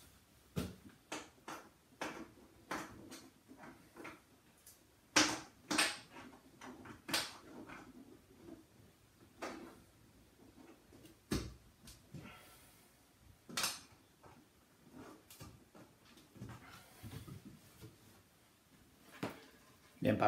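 Wooden shelving knocks and clicks as a man fits it.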